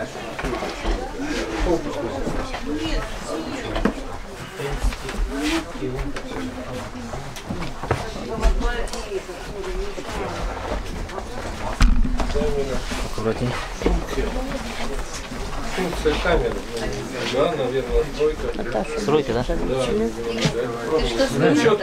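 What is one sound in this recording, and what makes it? Several men and women talk over one another close by.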